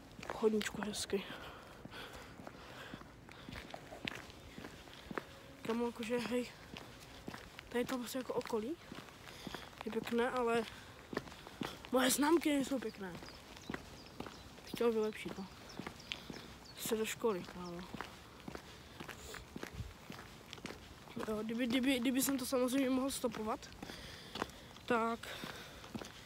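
Footsteps tap on paving stones at a walking pace.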